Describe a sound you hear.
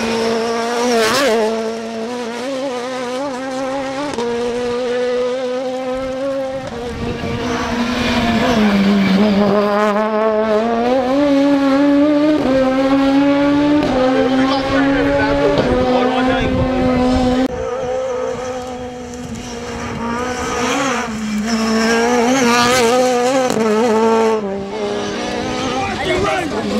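A rally car engine revs high and shifts through the gears at racing speed.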